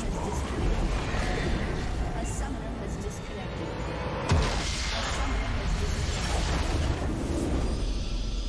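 Spell effects whoosh and blast in a game battle.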